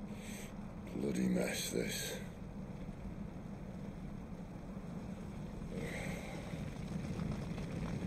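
A man speaks in a low, weary voice.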